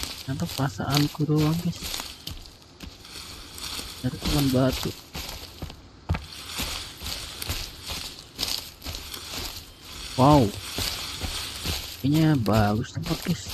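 A young man talks casually into a microphone in short bursts.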